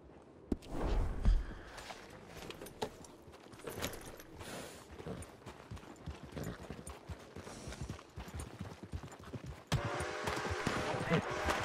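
Horse hooves clop on a muddy street.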